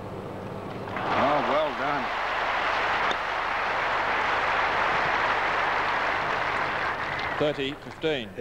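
A large crowd applauds loudly.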